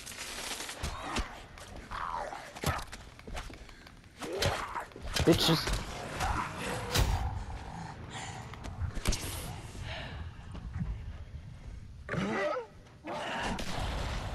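A zombie snarls and groans nearby.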